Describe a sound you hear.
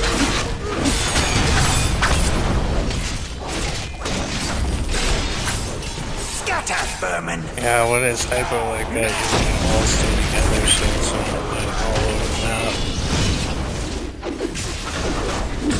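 Blows and impacts clash again and again.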